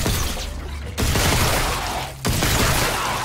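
A weapon fires in loud, sharp bursts.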